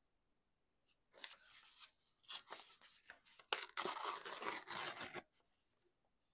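Paper tears slowly along a metal ruler.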